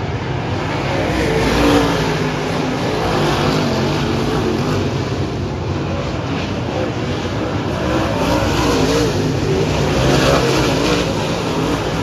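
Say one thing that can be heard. Engine noise swells and fades as cars pass close by.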